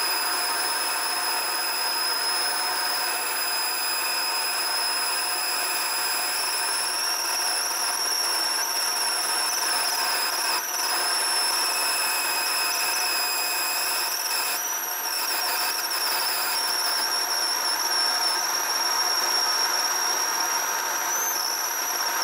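A metal lathe hums steadily as it spins.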